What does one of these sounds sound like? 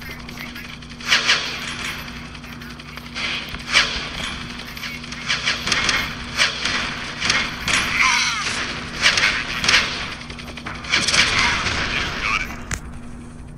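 Gunfire bursts out in rapid bursts.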